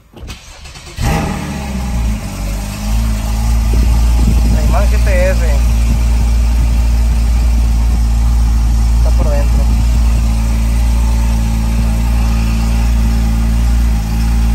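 A car engine starts and idles with a steady low rumble.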